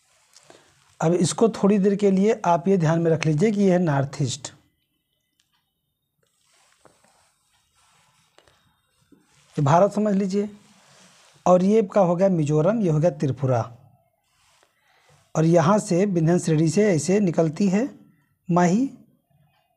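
A man speaks calmly and clearly, close to a microphone, in short bursts with pauses.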